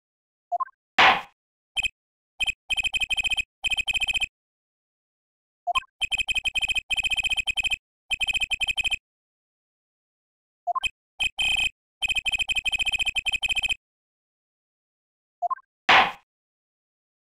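A gavel bangs sharply on wood.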